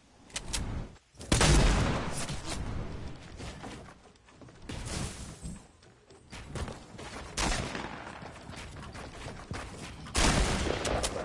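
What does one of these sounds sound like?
Footsteps patter quickly over grass and wood.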